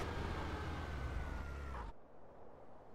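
A car engine hums at low speed and then cuts off.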